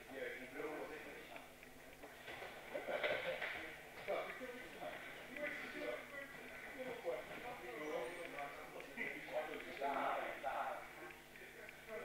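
Young men and women talk and call out in an echoing hall.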